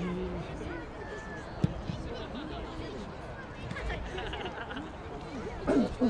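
A crowd of spectators chatters outdoors in the distance.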